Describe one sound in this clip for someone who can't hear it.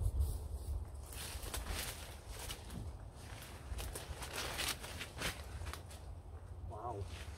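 Someone pushes through dense undergrowth, with leaves and stems rustling and swishing close by.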